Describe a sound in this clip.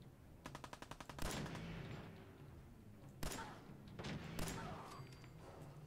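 Gunshots fire in quick bursts with echoing booms.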